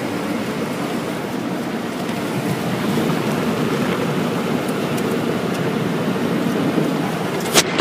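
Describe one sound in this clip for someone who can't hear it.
Brushes of a car wash slap and rub against the car.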